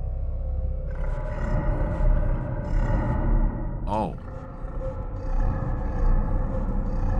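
A man talks casually and close to a microphone.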